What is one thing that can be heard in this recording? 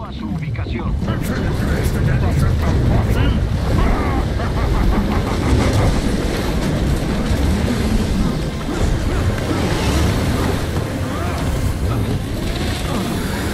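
A vehicle engine roars as it drives closer.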